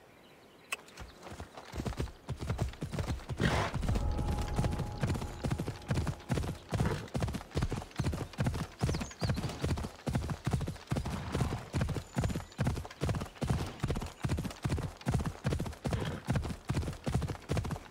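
Hooves gallop in a steady rhythm on grass and dirt.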